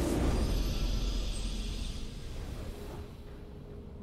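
A triumphant game fanfare rings out and fades away.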